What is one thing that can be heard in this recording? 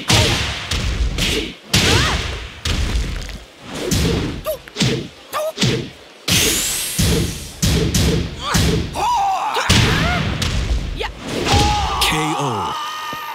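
Punches and kicks land with heavy thuds in quick succession.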